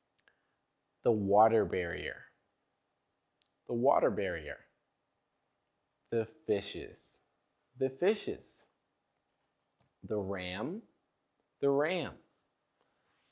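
A young man speaks clearly and calmly into a close microphone, in short phrases with pauses between them.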